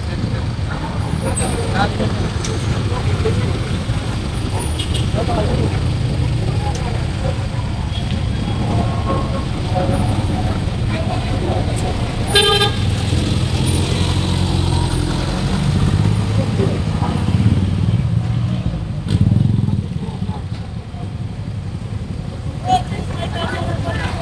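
Traffic engines rumble steadily outdoors on a busy street.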